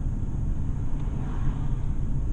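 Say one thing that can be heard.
A passing car swishes by close alongside.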